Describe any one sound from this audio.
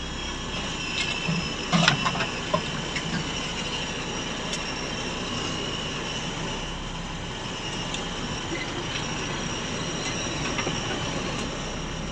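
Loose parts of the vehicle rattle and knock over bumps.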